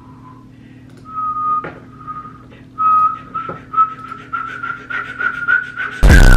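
A young woman whistles a slowly rising tune in short bursts.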